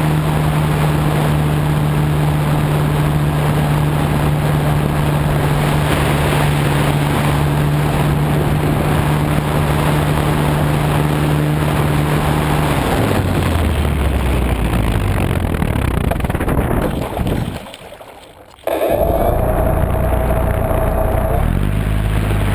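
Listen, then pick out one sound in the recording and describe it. A small propeller motor buzzes loudly, then drops in pitch, cuts out briefly and picks up again.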